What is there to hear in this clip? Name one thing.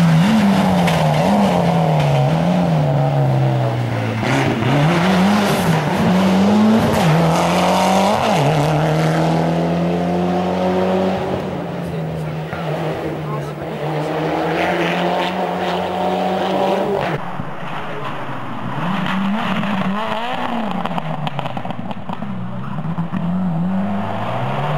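A rally car engine revs hard and roars past, rising and falling in pitch.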